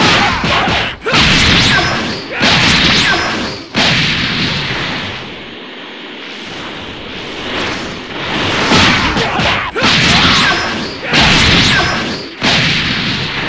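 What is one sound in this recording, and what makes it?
Punches and blasts strike with heavy thuds.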